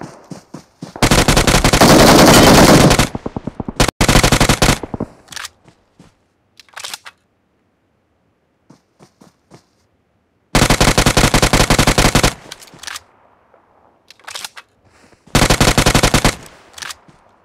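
Rapid bursts of automatic gunfire crack out loud and close.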